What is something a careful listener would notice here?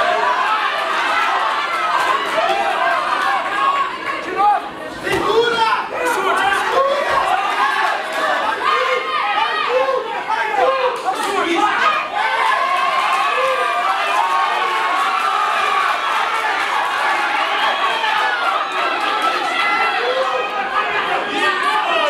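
A crowd of spectators shouts and cheers loudly throughout.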